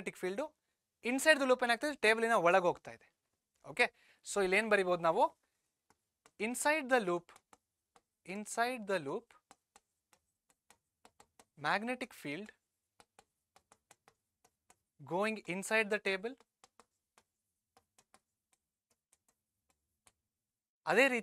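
A man explains calmly in a clear, close voice, with pauses between phrases.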